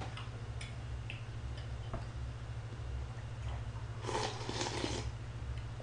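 A young man slurps and drinks from a cup.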